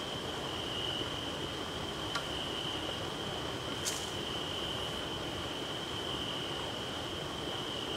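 A man rustles through low plants close by.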